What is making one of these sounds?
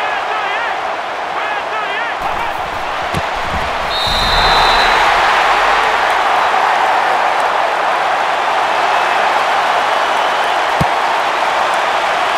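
A large crowd cheers steadily in a stadium and swells louder partway through.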